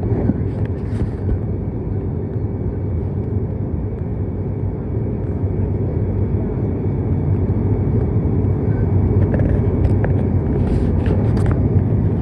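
A propeller engine drones loudly and steadily, heard from inside an aircraft cabin.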